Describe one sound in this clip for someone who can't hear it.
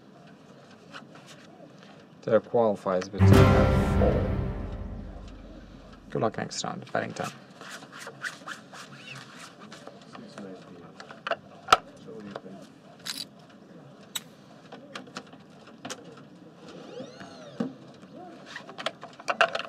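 Playing cards slide and flick on a felt table.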